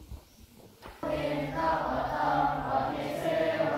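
A group of young monks chants together in unison in an echoing hall.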